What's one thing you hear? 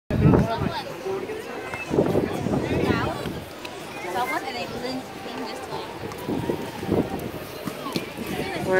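Young women talk and laugh close by, outdoors.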